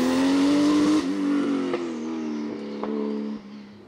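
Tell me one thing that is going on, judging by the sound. A race car's exhaust pops and crackles.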